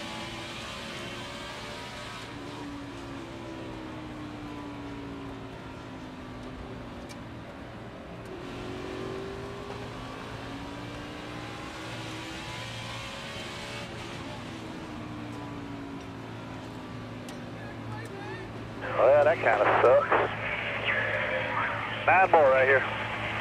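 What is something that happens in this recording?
A race car engine roars steadily, rising and falling in pitch as it changes gear.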